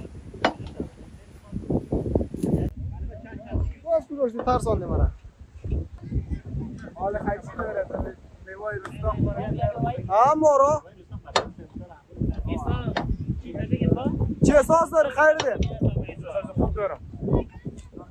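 Several men talk in the background outdoors.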